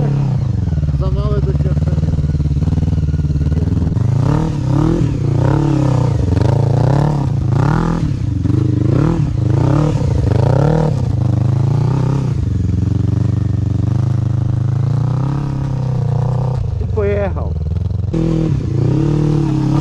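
A quad bike engine roars and revs up and down nearby.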